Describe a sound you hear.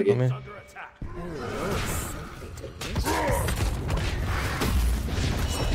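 Game combat effects clash and burst loudly.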